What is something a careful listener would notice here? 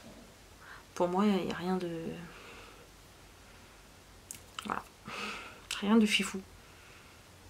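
A young woman talks expressively close to a microphone, in short bursts with pauses.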